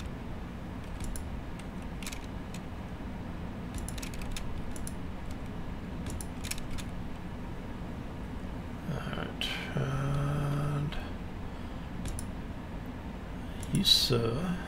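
Short electronic clicks sound as building blocks snap into place.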